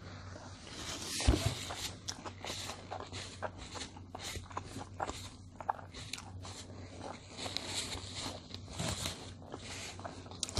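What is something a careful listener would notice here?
A paper napkin rustles as it is wiped.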